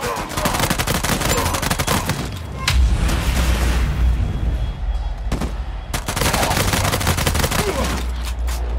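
Pistol shots fire in rapid bursts.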